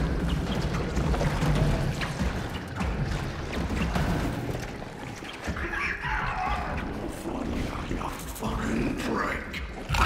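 Footsteps thud on a metal walkway.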